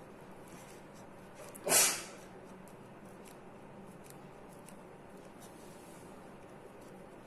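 Scissors snip through soft foam.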